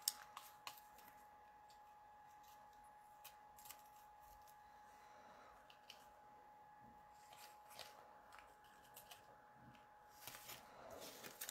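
A small paintbrush dabs and brushes lightly on card.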